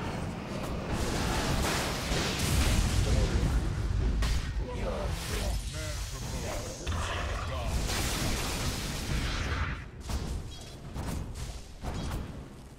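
Blades clash and strike repeatedly.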